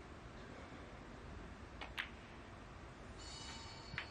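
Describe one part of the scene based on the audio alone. Snooker balls knock against each other with a clack.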